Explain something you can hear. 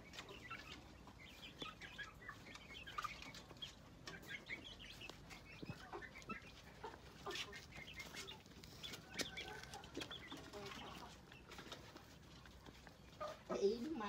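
Chickens cluck and chirp nearby.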